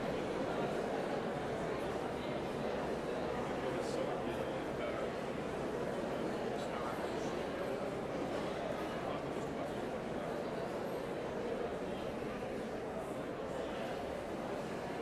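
A large crowd of men and women chatters and greets one another in a big echoing hall.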